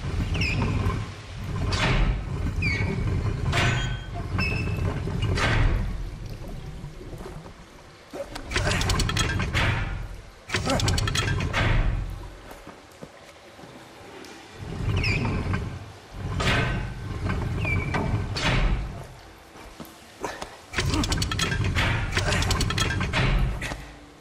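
Water rushes through metal pipes in bursts.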